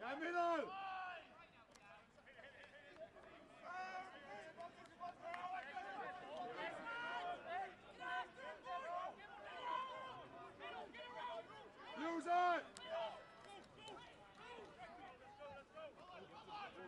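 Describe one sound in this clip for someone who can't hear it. Rugby players shout to each other across an open pitch.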